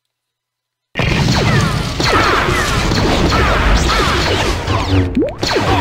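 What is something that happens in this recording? A lightsaber hums and swooshes as it swings.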